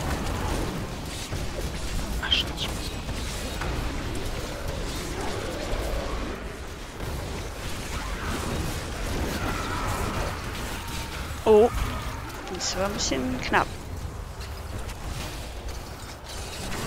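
A young woman talks calmly into a microphone.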